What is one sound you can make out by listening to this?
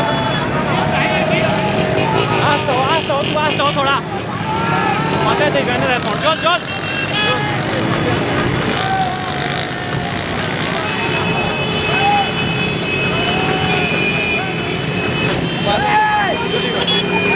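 Motorcycle engines drone steadily close by.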